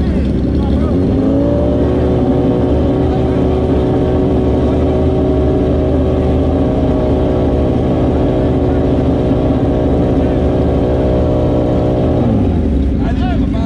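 A motorcycle engine revs up and holds a high steady roar, then drops back.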